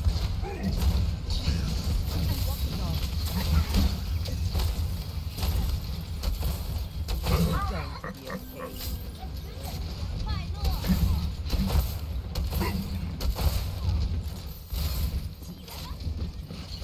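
Gunfire and explosions crackle and boom in a video game.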